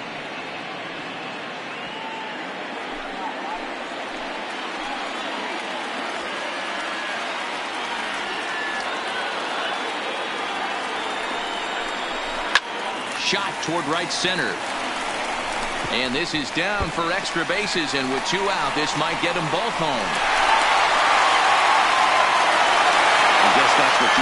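A large crowd murmurs steadily and then cheers loudly.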